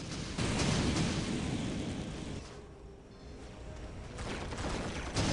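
Gunfire rattles in a rapid battle.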